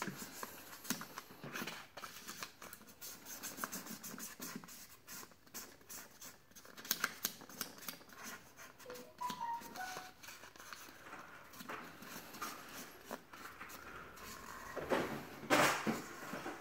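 A marker tip squeaks and scratches as it colours on a surface.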